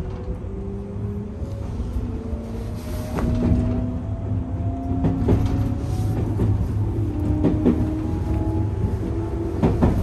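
Train wheels rumble and clack over rail joints.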